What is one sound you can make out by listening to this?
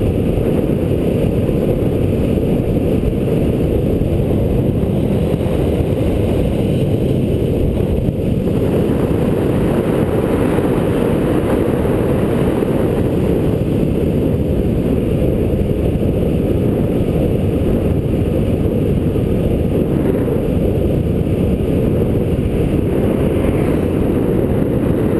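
Wind roars and buffets against a microphone on a fast downhill bicycle ride.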